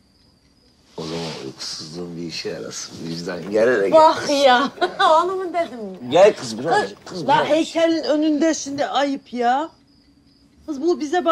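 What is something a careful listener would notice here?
A young woman laughs and shrieks playfully.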